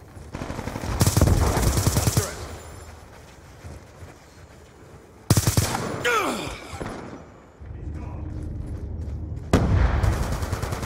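An automatic rifle fires in rapid, loud bursts.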